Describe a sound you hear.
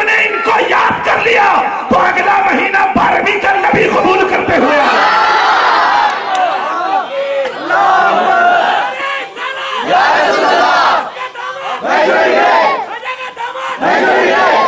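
A man preaches with passion through a loudspeaker system, his voice echoing.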